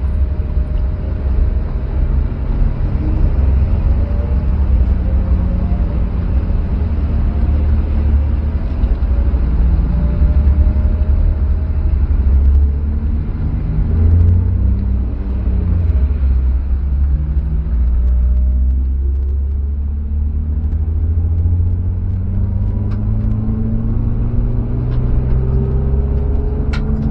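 A car engine rumbles low and steady from inside the car, rising and falling in pitch as it speeds up and slows.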